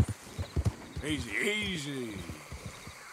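A horse snorts and whinnies.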